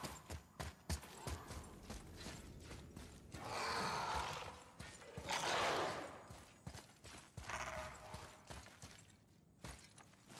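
Heavy footsteps thud on the ground at a steady pace.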